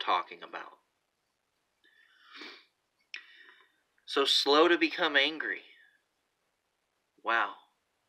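A man talks close by in short bursts, with pauses between.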